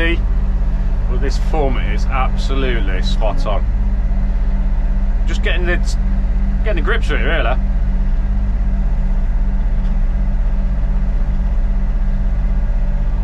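A diesel engine idles with a steady, deep drone close by.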